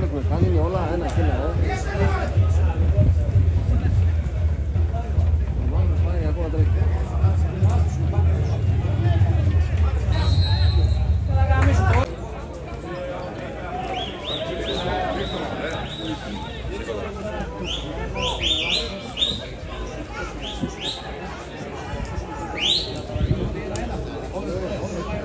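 Men shout across an open sports field at a distance.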